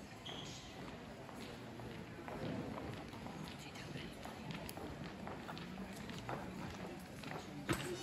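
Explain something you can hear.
Footsteps tap across a hard floor in an echoing hall.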